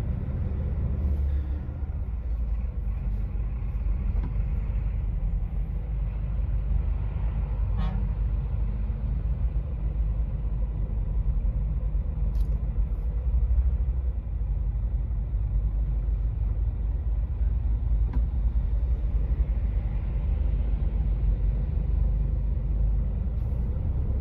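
A truck engine idles with a low, steady rumble nearby.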